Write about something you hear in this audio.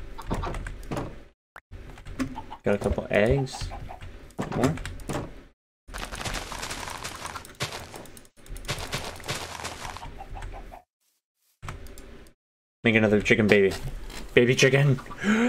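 Chickens cluck close by.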